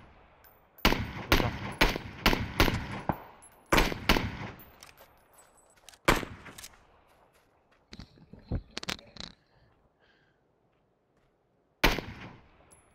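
Rifle shots crack loudly in quick succession.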